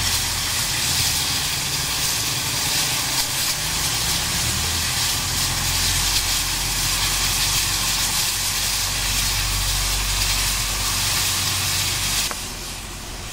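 Steam hisses loudly from a crane's boiler.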